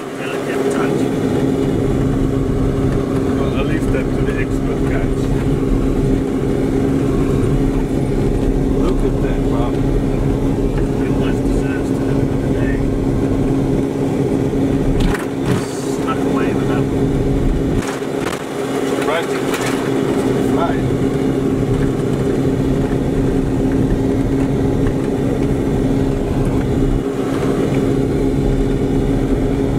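Tyres rumble and crunch over a bumpy dirt track.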